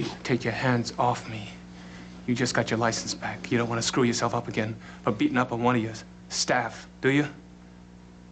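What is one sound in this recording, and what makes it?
A man speaks tensely and angrily at close range.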